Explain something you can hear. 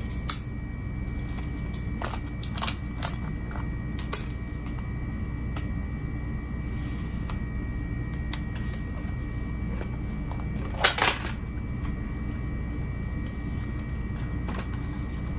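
Fabric rustles and slides as it is handled.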